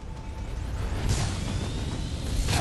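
An energy blast whooshes and rises in pitch.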